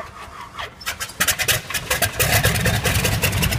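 A biplane's radial engine coughs and starts up.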